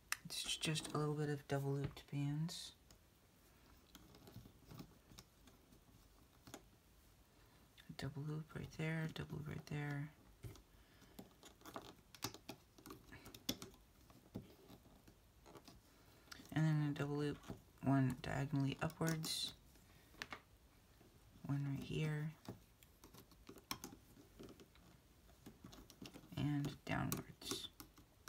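Small rubber bands creak and snap softly as they are stretched and hooked.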